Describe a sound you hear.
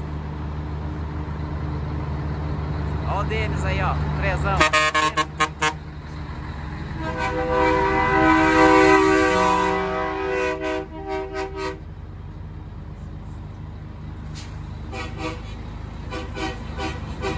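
A truck engine idles with a deep, steady rumble nearby.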